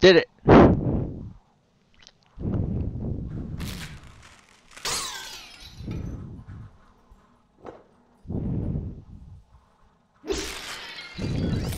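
Glass shatters with a bright crash.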